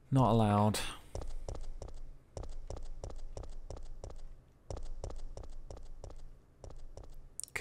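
Footsteps tap on a hard concrete floor.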